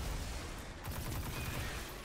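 Rapid gunfire crackles in a video game.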